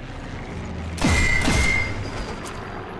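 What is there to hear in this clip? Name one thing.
A suppressed pistol fires a single shot.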